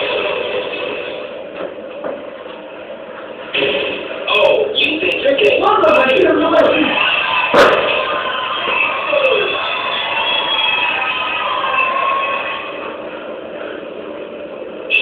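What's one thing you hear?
Upbeat electronic game music plays from a television.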